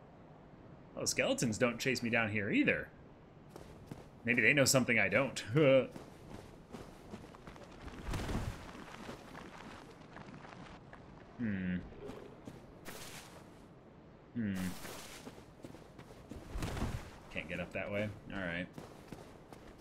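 A young man talks into a microphone up close, casually, in short bursts.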